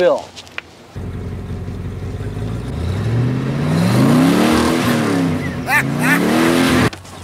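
A car engine starts and rumbles steadily.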